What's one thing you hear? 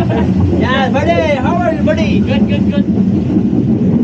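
A young man laughs and talks loudly nearby.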